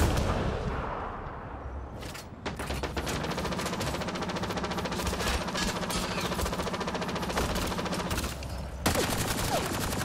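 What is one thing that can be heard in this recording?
A large creature roars and snarls close by.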